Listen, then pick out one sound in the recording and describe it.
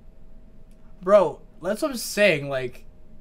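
A young man exclaims in surprise close to a microphone.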